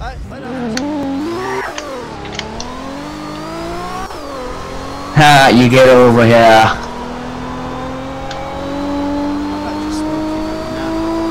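A car engine roars and climbs in pitch as the car speeds up through the gears.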